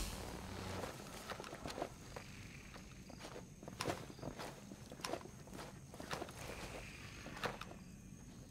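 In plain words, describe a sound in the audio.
Boots step and crunch on a hard floor.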